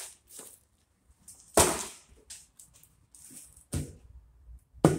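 A hard object knocks onto a table.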